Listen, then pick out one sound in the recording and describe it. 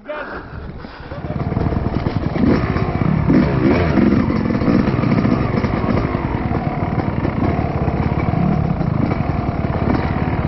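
A dirt bike engine roars and revs up close.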